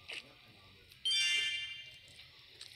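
A game menu opens with a short chiming tone.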